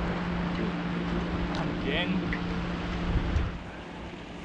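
A boat's electric motor hums steadily, then stops.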